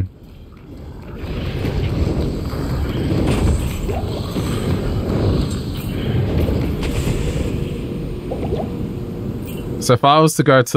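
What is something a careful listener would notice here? A poison cloud hisses and bubbles.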